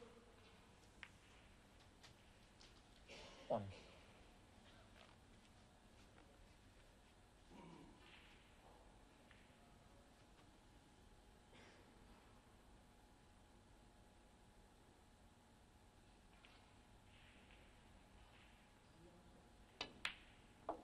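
A snooker cue strikes the cue ball.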